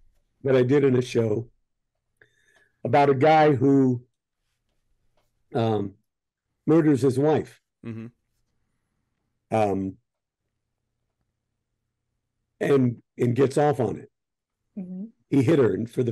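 An older man speaks calmly over an online call, in short bursts with pauses.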